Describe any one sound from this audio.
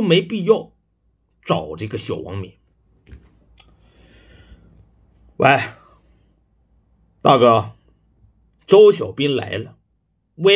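A young man speaks with animation into a phone, close by.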